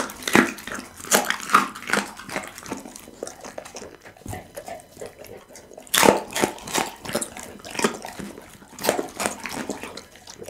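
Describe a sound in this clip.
A dog licks and smacks its lips wetly.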